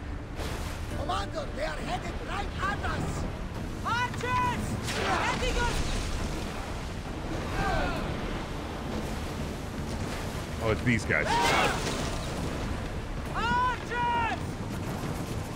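Men shout in battle.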